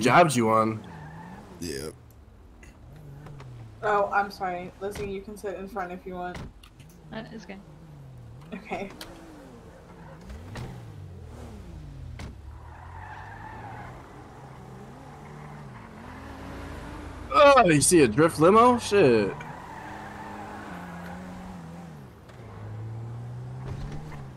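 A car engine hums and revs as it drives off.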